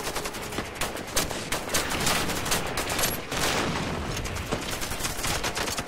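Single pistol shots crack.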